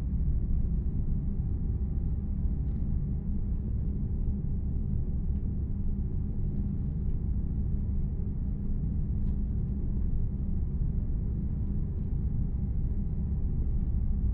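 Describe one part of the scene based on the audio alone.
A bus engine rumbles steadily at a low pitch.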